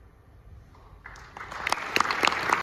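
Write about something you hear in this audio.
A large choir starts to sing in a big echoing hall.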